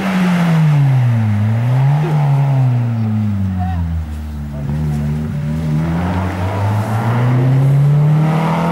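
A rally car engine roars and revs hard as the car races past.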